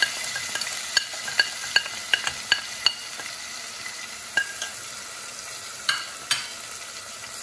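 A metal spoon clinks sharply against a plate several times.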